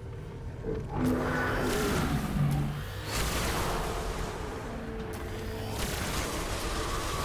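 Gunfire and blasts crackle from a game.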